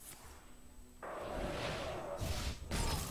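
A spell charges up with a rising, sparkling whoosh.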